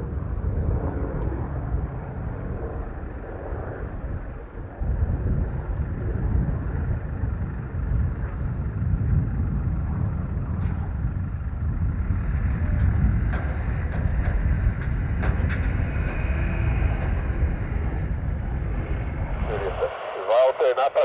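Helicopter rotor blades whir slowly.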